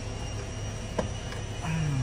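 A glove box latch clicks.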